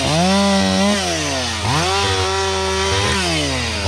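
A chainsaw cuts through a log.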